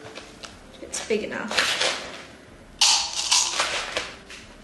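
A spoon scoops and scrapes through gritty soil.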